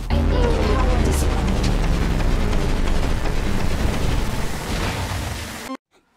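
Game music plays loudly with a deep pulsing beat.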